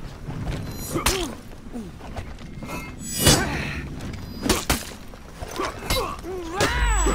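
Swords clash and ring with sharp metallic strikes.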